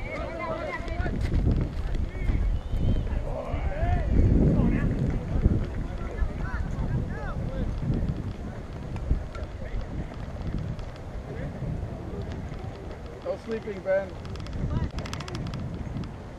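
Young players and spectators shout and cheer across an open field.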